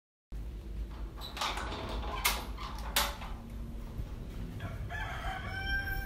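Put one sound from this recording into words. A metal gate door rattles as it swings open.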